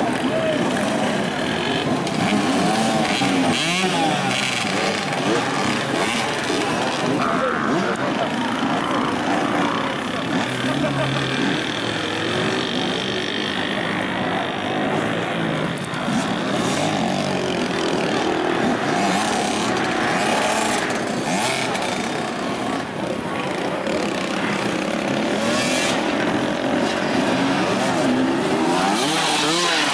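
Motorcycle engines rev and sputter on a steep slope.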